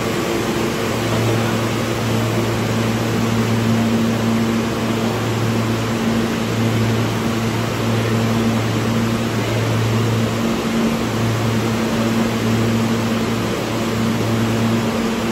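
Station noise echoes with a steady rushing hiss.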